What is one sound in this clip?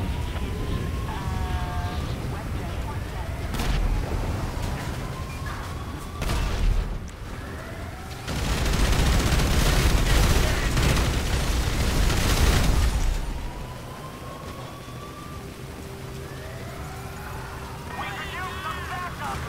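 Footsteps splash quickly on wet ground.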